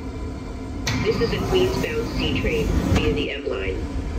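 Train doors slide open.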